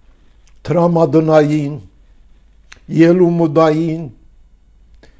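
An elderly man speaks slowly and firmly, close to a microphone.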